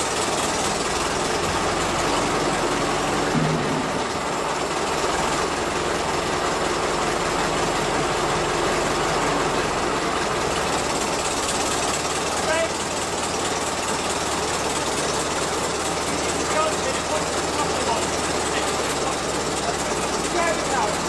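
An old engine runs steadily nearby.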